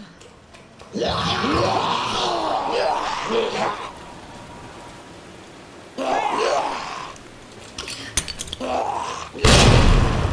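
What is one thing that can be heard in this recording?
A monster shrieks and growls loudly.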